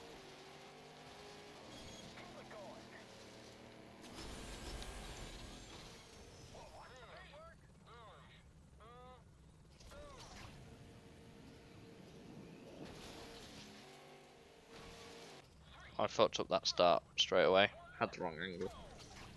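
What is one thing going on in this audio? A racing car engine hums and revs.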